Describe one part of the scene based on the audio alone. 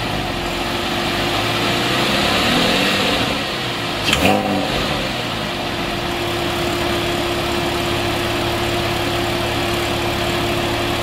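A sports car engine idles with a deep, steady rumble from its exhausts close by.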